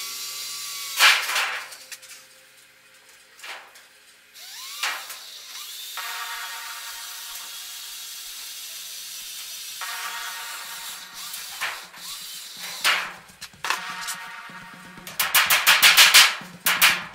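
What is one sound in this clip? Sheet metal clanks and rattles as it is handled.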